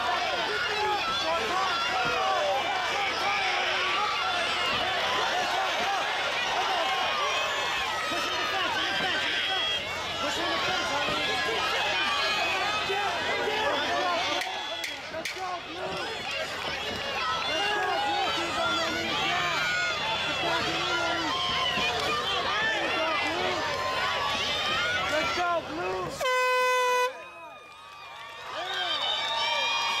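A large crowd cheers and shouts loudly outdoors.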